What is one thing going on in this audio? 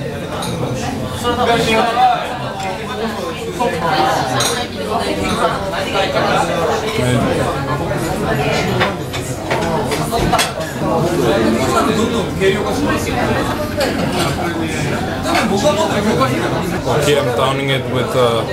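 A young man talks close by in a lively, chatty way.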